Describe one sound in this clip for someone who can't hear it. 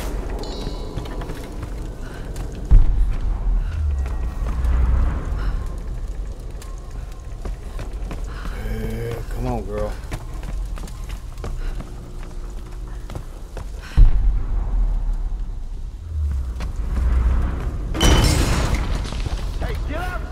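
Footsteps thud on wooden floorboards.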